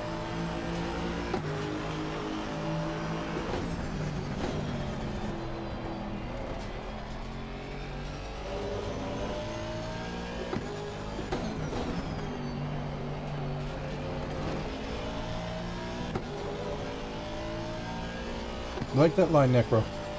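A racing car engine roars steadily, its pitch rising and falling through the gears.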